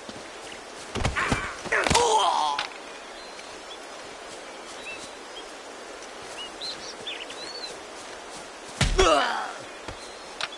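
Heavy punches land with thuds in a scuffle.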